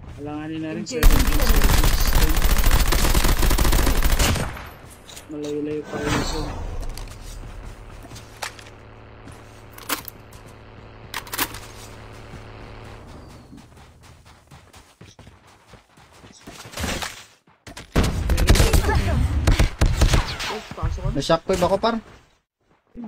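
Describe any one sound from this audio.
Gunfire bursts loudly from a game.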